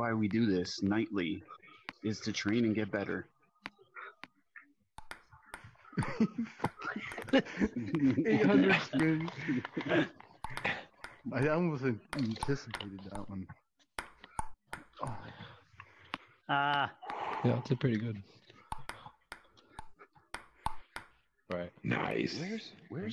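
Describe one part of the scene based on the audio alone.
A table tennis ball clicks sharply against paddles and the table.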